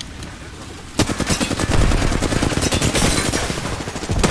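A gun fires in rapid bursts at close range.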